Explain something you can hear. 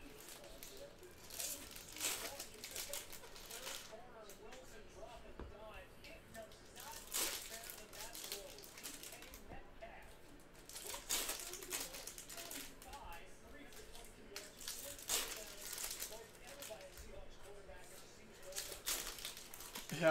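Foil card packs crinkle and tear as hands open them.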